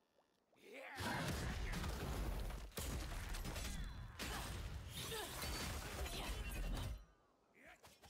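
Blades clash and slash in a loud fight.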